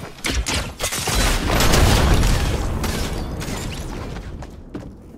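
An explosion booms loudly and then rumbles away.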